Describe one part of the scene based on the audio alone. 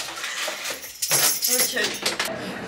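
Keys jingle and scrape in a door lock.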